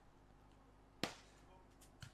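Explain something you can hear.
A volleyball is struck hard with a hand.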